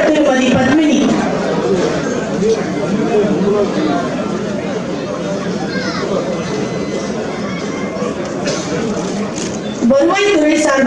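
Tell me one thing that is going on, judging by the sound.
A crowd murmurs and claps.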